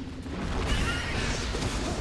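Plastic bricks clatter as a pile breaks apart.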